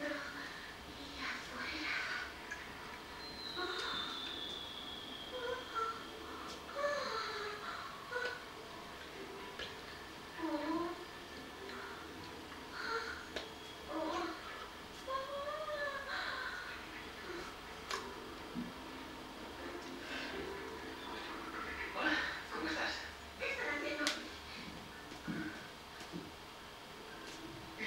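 A middle-aged woman talks with animation, close to the microphone.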